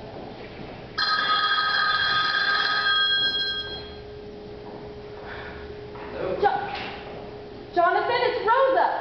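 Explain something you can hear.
A small band plays live music in a hall.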